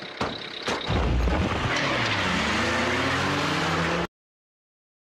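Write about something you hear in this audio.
A van engine revs as it drives up close.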